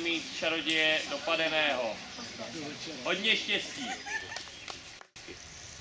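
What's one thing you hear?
A crowd of children chatter and call out nearby, outdoors.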